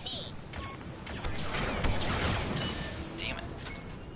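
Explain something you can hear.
A blaster rifle fires in quick shots.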